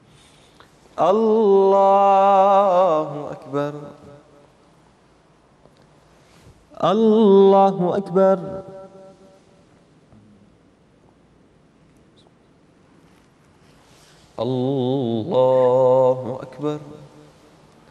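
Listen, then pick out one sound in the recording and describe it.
A man chants a short phrase aloud in a reverberant room, pausing between calls.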